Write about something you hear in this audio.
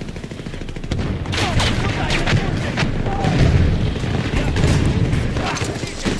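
Gunfire bursts out in rapid rounds.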